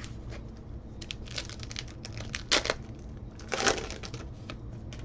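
Plastic wrappers crinkle and rustle as a card pack is torn open.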